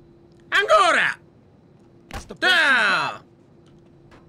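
A man shouts loudly into a close microphone, his voice dropping in pitch.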